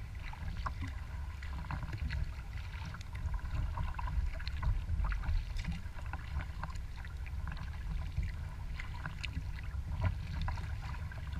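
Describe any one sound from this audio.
Small waves lap and splash against the hull of a kayak.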